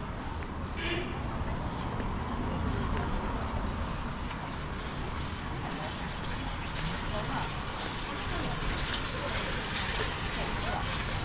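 Traffic hums steadily in the distance on an outdoor street.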